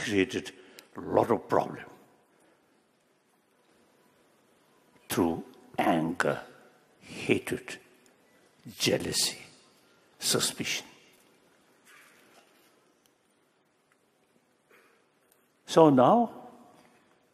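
An elderly man speaks slowly and emphatically into a microphone, with pauses.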